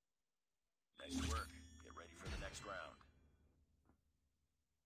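A short jingle plays as the round ends.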